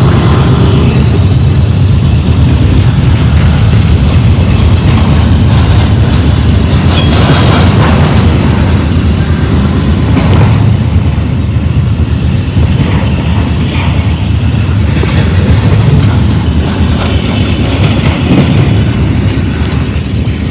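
Freight cars roll by, wheels clacking and squealing on the rails.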